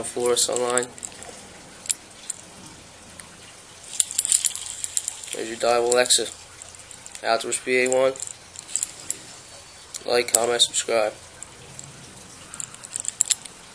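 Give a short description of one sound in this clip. A fishing reel clicks and rattles.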